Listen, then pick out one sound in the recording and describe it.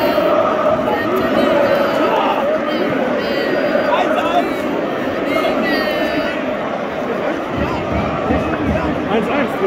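A large stadium crowd cheers and chants loudly outdoors.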